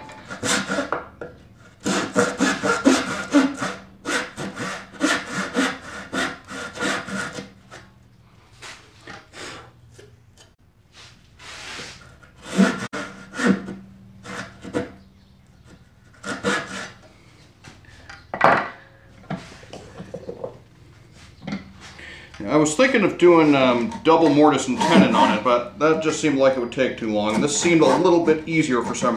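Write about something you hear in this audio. A hand saw cuts through wood with short strokes.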